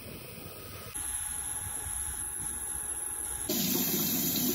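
A jet engine whines and roars steadily nearby.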